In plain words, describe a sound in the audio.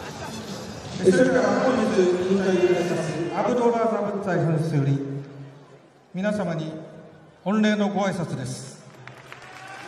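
A man announces loudly through a microphone over loudspeakers in a large echoing hall.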